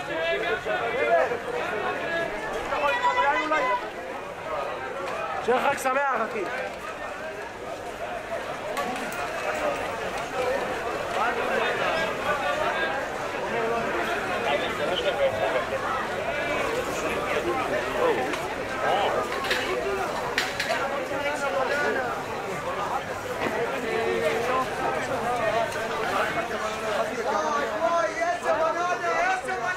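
Footsteps of many people shuffle on stone paving.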